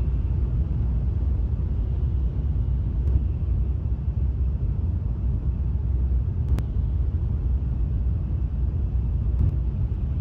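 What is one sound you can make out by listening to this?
A train rumbles low and steadily while moving.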